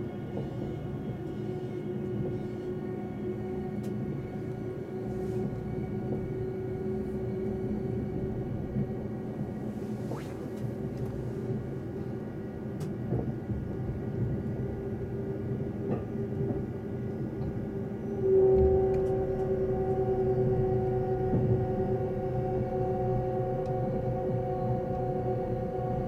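A train's motor whines at a steady pitch that shifts higher near the end.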